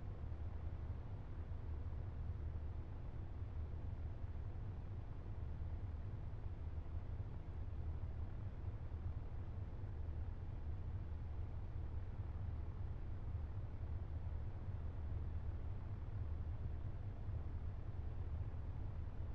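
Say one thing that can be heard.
A small propeller engine drones steadily.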